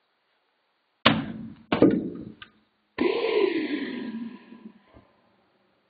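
A heavy ball knocks sharply against a plastic toy tower.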